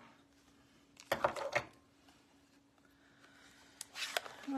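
A small box is picked up and set down.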